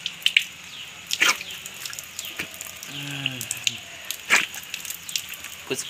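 Water splashes as a man rinses his face.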